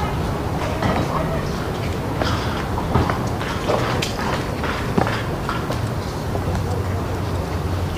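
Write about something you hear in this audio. Footsteps crunch and scuff on a stone path.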